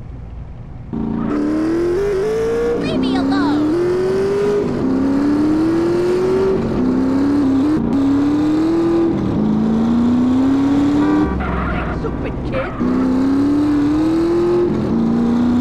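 A motorcycle engine revs and shifts gears repeatedly as it speeds along.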